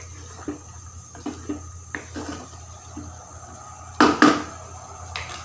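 A wooden spoon knocks and scrapes against a frying pan.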